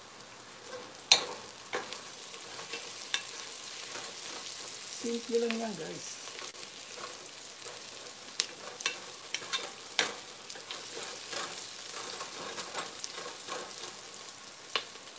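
A wooden spoon scrapes and knocks against a pot.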